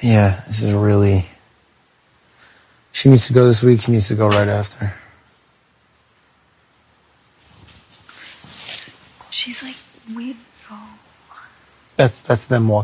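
A young man speaks calmly and close to a microphone in short bursts.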